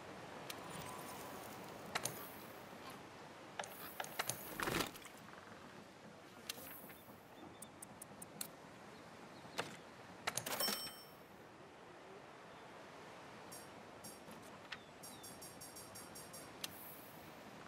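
Short menu clicks and chimes sound as options are picked.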